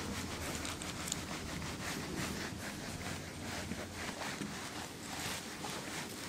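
A felt eraser rubs across a whiteboard.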